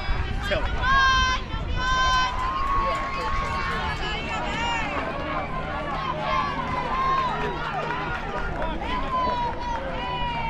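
Young girls shout and cheer loudly nearby.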